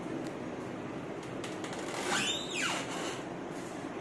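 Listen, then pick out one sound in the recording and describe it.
A refrigerator door is pulled open with a soft suction pop.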